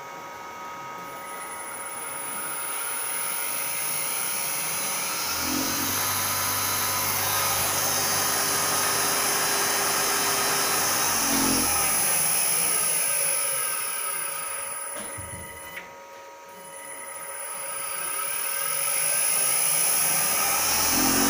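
Electric motors spin up and run with a steady high whine.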